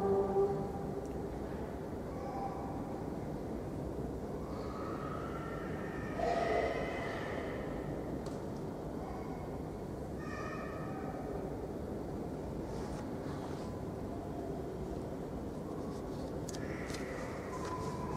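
A man chants softly in a large echoing hall.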